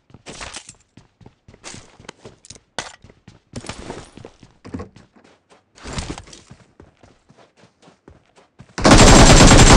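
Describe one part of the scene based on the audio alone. Quick footsteps thud and tap on a hard floor.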